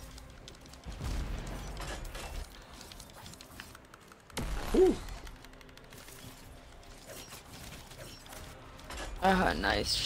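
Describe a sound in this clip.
Gunfire rattles and explosions boom in a video game.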